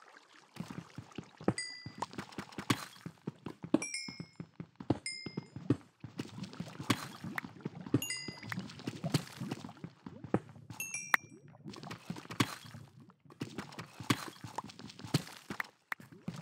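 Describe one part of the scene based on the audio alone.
A pickaxe taps rapidly against stone.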